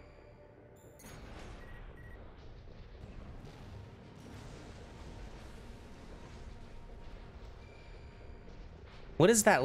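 Game explosions boom and crackle.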